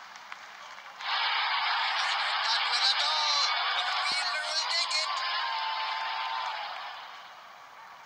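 A large crowd cheers and roars loudly, then fades.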